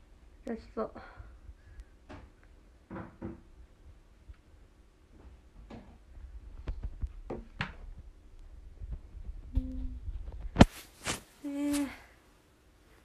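A young woman speaks softly and briefly, close by.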